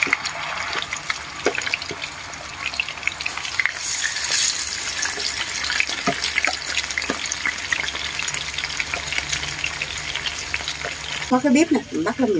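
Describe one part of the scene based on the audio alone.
Fish sizzles and spits as it fries in hot oil.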